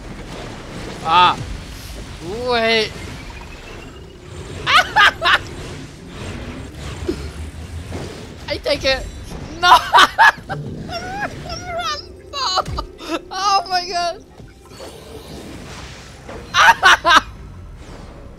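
Loud magic blasts and clashes burst out in quick flurries.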